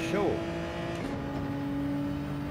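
A racing car engine shifts up a gear with a brief dip in pitch.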